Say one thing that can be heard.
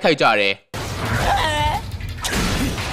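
A young man laughs maniacally.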